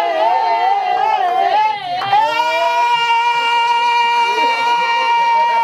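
An elderly woman sings loudly and joyfully close by, ending on a long held note.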